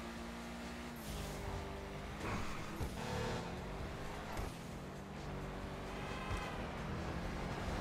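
Car engine revs rise and fall as it speeds up and shifts gears.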